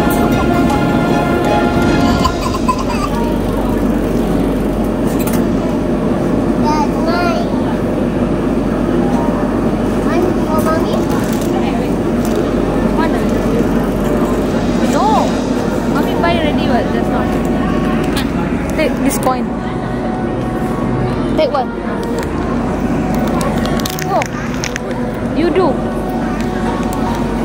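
A crowd murmurs and chatters all around in a busy indoor hall.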